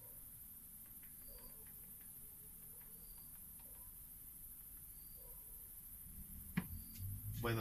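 Remote control buttons click softly.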